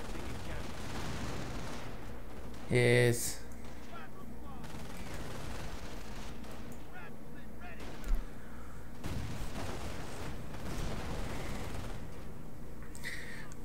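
Gunfire crackles in a battle.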